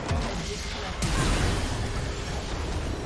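A crystal structure shatters with a loud magical blast.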